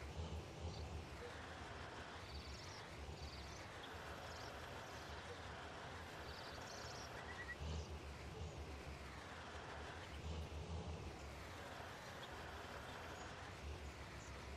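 A tractor engine rumbles steadily.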